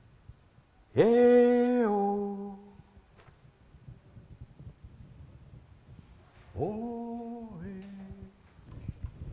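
A man calls out long, loud held notes.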